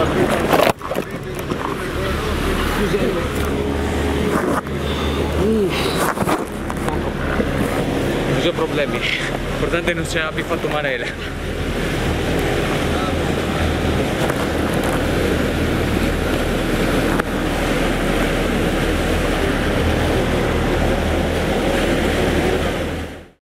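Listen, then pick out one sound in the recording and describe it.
Wind blusters loudly across the microphone outdoors.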